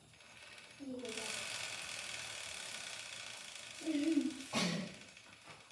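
A bicycle wheel whirs as it spins.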